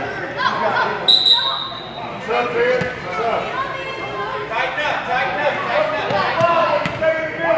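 Children chatter and call out in a large echoing hall.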